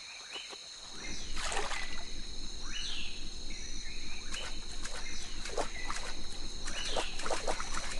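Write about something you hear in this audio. Water splashes and churns as a tiger wades and swims.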